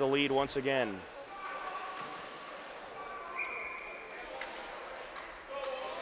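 Ice skates scrape and glide across the ice.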